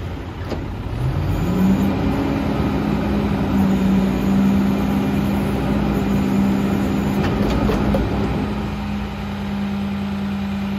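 A truck's hydraulic lift whines as it raises a bin.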